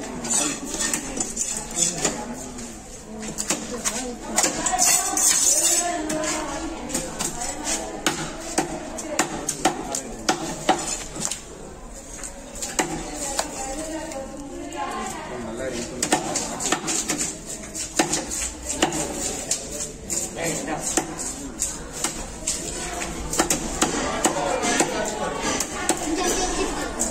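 A knife slices and taps on a wooden chopping block.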